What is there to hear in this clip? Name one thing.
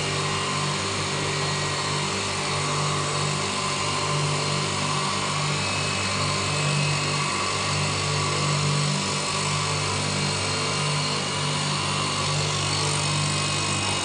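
Electric motors on a glass beveling machine hum steadily.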